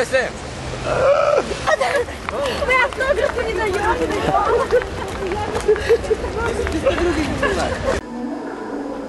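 A teenage boy talks loudly close by, outdoors.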